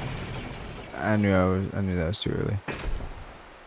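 A young man speaks with animation through a close microphone.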